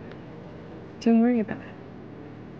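A young man answers softly.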